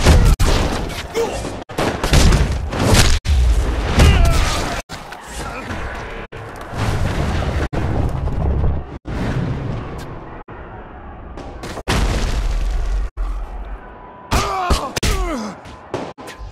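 Heavy punches thud in a brawl.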